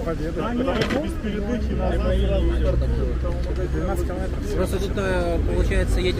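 Several young men talk together close by, outdoors.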